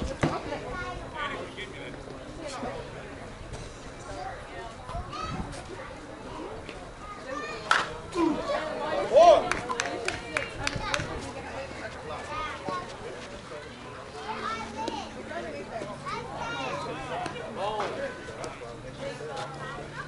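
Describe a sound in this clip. Adult men talk and call out across an open field outdoors.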